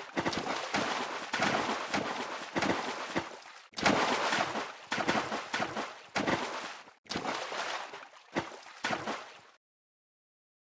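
Water splashes repeatedly.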